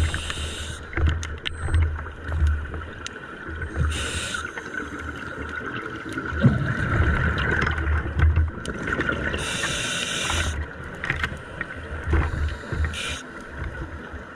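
Air bubbles gurgle and rush past in bursts underwater.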